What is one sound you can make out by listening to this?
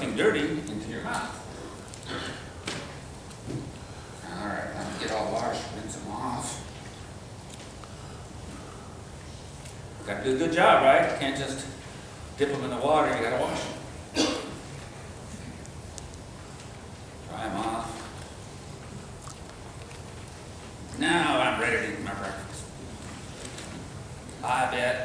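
An elderly man speaks calmly, pausing often.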